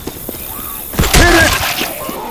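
A sniper rifle fires a loud, sharp shot.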